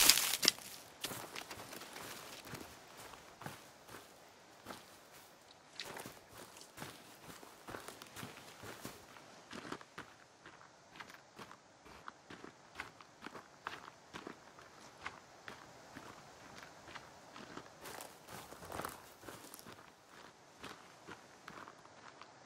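Footsteps rustle through grass and leaves at a steady walking pace.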